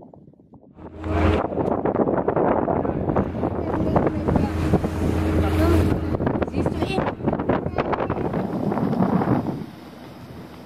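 Wind roars past as a boat speeds over the water.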